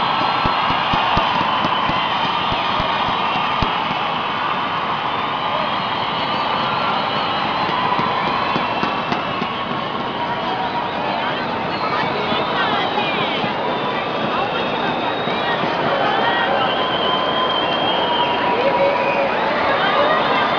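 A large crowd cheers and chants loudly in a big echoing arena.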